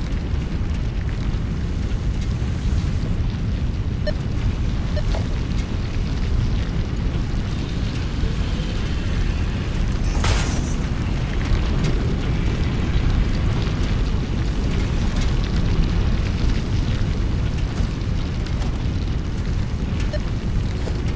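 A machine hums with a steady low rumble.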